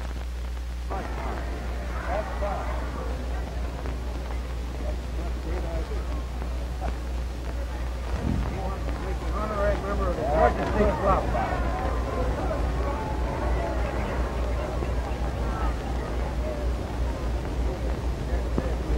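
A group of men chatters nearby.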